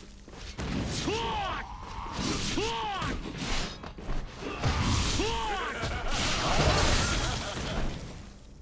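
Heavy blows land with thuds.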